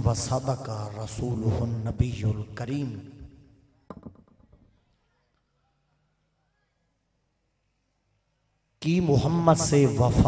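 A man speaks with animation into a microphone, heard through loudspeakers with a slight echo.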